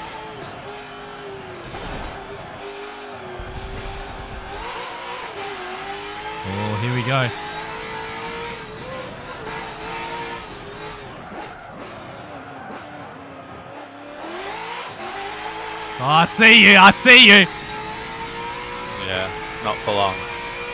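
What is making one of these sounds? A racing car engine roars, revving up and down with gear changes.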